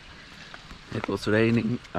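A young man speaks close to the microphone, outdoors.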